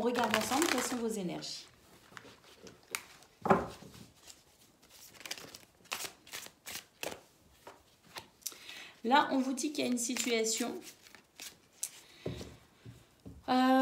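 Cards are shuffled and flicked with soft papery taps.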